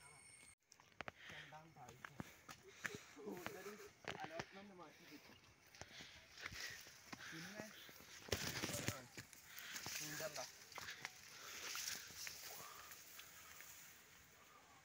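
Leaves and grass rustle as people push through dense brush.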